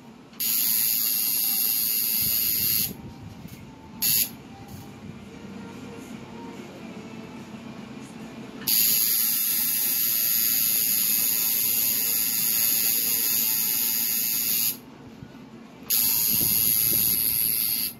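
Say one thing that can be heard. A tattoo machine buzzes steadily in short bursts, with quiet pauses between.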